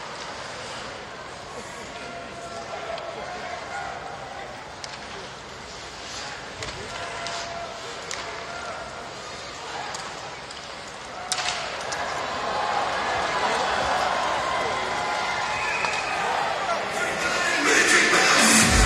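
A crowd murmurs and cheers throughout a large echoing arena, growing louder.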